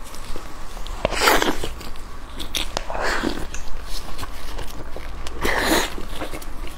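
A young woman bites into a soft bun and chews noisily close to a microphone.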